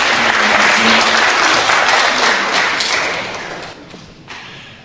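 An audience applauds in a large echoing hall.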